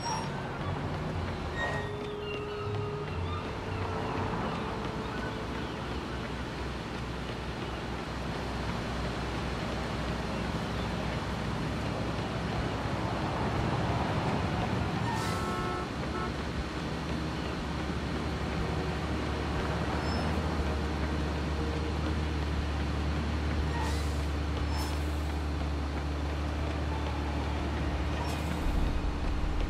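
Car engines idle and hum steadily in traffic nearby.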